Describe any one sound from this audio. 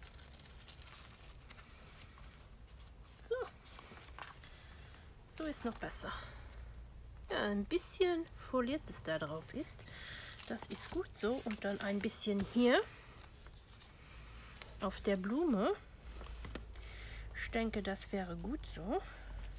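Paper rustles and slides as hands handle a card.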